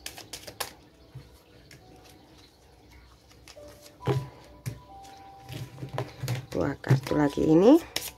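Playing cards are dealt and tapped down onto a table.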